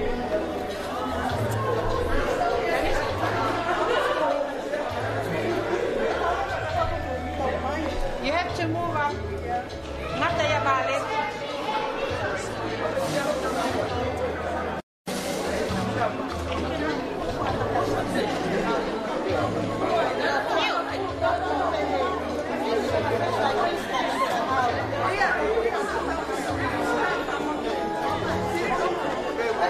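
A crowd of men and women chatter and talk over one another.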